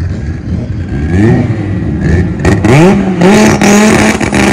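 A car engine revs up sharply several times.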